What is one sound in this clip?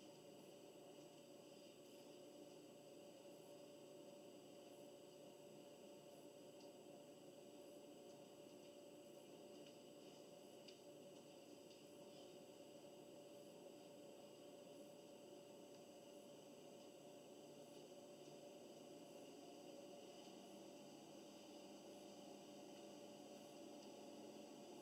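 Music plays faintly from a stereo.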